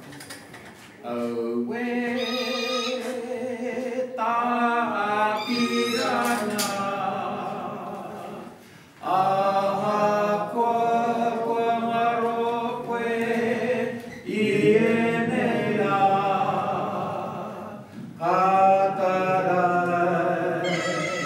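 A man sings out in a large echoing hall.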